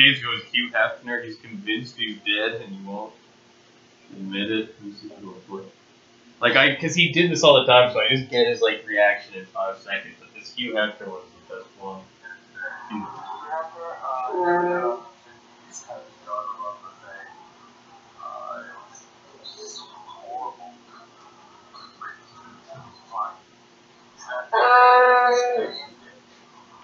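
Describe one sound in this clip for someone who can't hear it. A man talks close by, casually.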